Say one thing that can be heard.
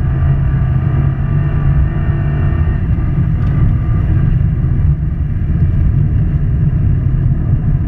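A turbocharged flat-four Subaru WRX roars at full throttle, heard from inside the car.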